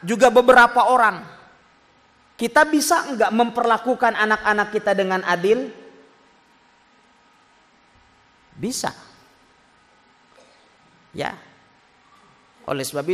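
A man speaks into a microphone with animation, in short bursts with pauses.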